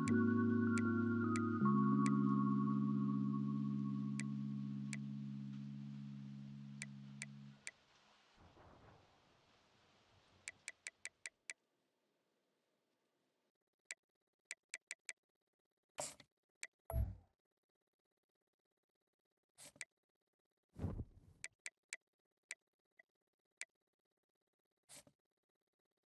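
Short electronic menu ticks click as a list scrolls.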